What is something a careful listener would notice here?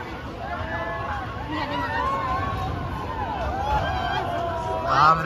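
Riders scream in the distance on a swinging fairground ride.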